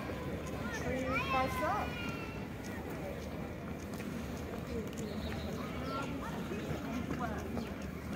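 A kick scooter's small wheels rumble over brick paving.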